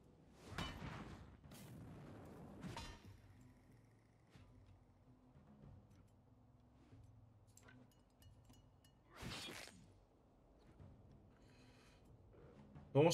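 Weapons clash and spells burst in a fight.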